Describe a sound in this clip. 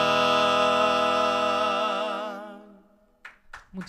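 Young men sing together in harmony, close to microphones.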